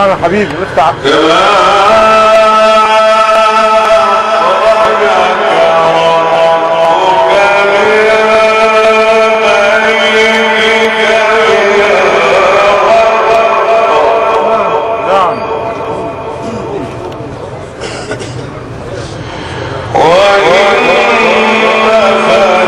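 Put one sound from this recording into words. A man chants loudly and melodically through a microphone and loudspeakers.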